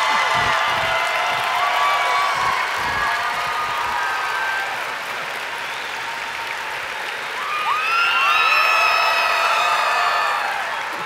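A man shouts excitedly.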